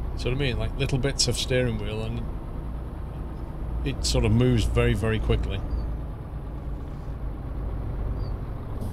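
A truck engine hums steadily on the road.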